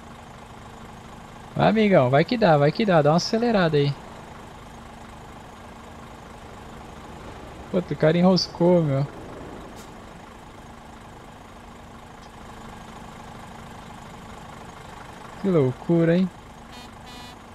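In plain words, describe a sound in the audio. A truck engine idles with a low steady hum.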